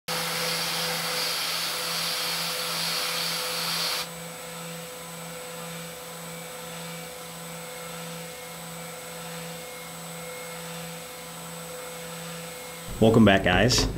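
A milling machine whines steadily as its cutter grinds into metal.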